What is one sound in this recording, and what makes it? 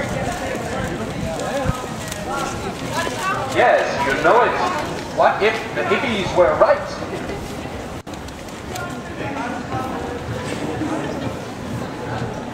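A crowd chatters outdoors on a busy street.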